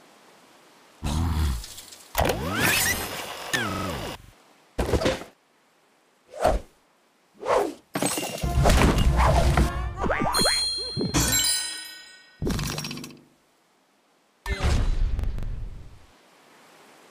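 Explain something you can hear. Cartoon game effects crash, whoosh and chime in quick bursts.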